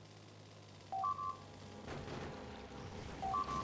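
Laser turrets fire with a buzzing crackle.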